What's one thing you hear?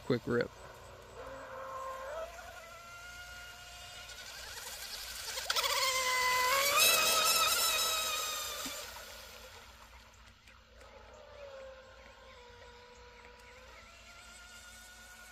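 A small model boat motor whines across the water, rising and falling in pitch as it passes close and fades away.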